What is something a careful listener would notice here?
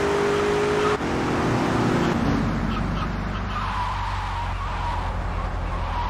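A car engine hums and revs while driving, then slows.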